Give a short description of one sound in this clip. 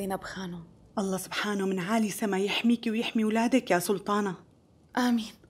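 An elderly woman speaks warmly with animation.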